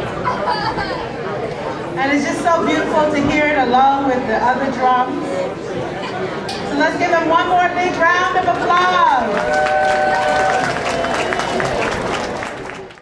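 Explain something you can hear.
A steel drum band plays a lively tune outdoors.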